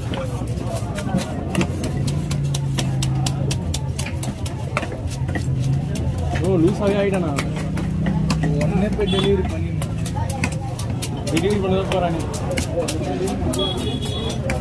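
A heavy knife chops and scrapes against a wooden block.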